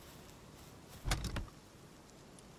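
A wooden chest opens with a thump.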